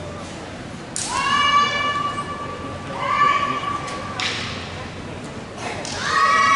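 Young women let out loud, sharp shouts in a large echoing hall.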